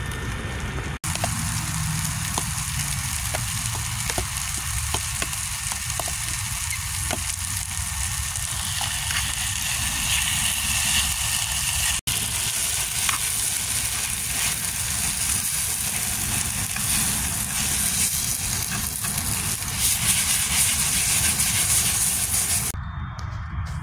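Vegetables sizzle loudly in a hot pan.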